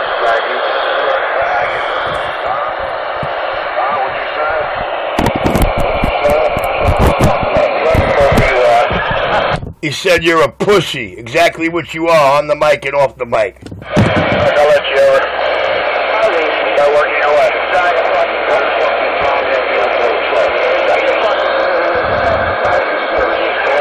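A radio hisses with loud static.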